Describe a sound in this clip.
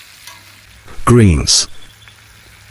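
A metal spatula scrapes and clatters in a pan.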